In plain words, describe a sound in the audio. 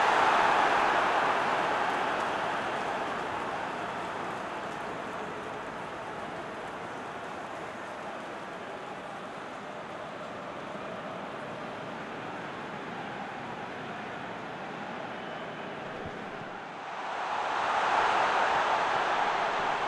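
A large crowd roars steadily in a stadium, swelling louder at times.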